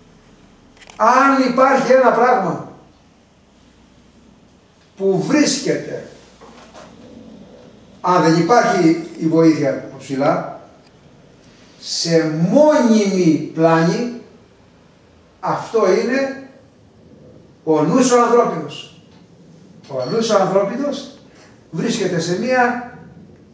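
A man speaks calmly and close by, pausing between phrases.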